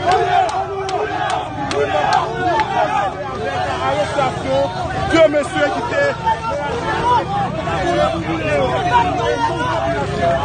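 A crowd of men talks and shouts over one another outdoors.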